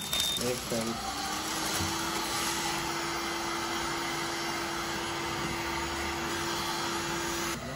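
A heat gun blows with a steady whooshing hum.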